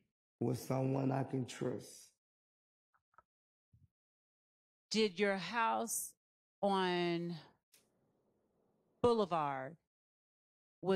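A woman speaks clearly into a microphone in short phrases, with pauses between them.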